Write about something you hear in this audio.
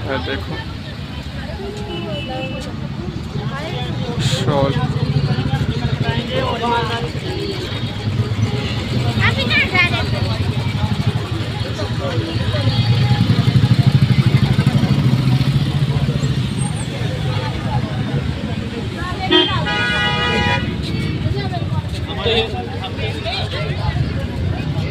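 Men talk nearby in a crowd.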